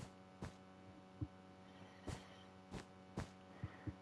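Blocks break with soft crunching taps.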